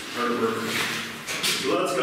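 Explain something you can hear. Water splashes down a rock face, echoing in a cave.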